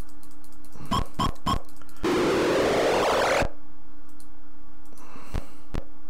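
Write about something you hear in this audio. Short electronic game sound effects clash in quick bursts.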